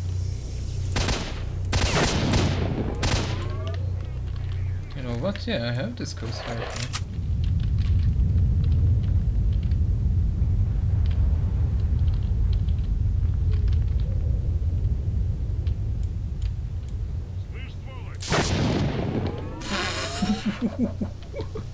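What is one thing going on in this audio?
A rifle fires several loud shots that echo outdoors.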